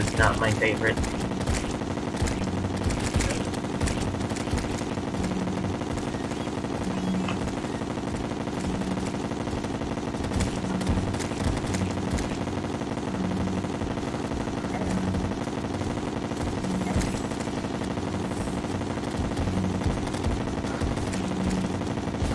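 Game weapons fire in quick bursts.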